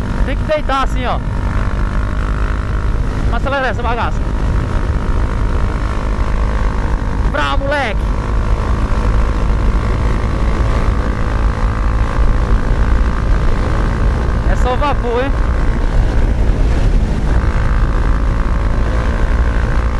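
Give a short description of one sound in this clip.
A Honda CB300 single-cylinder motorcycle engine drones while cruising at speed.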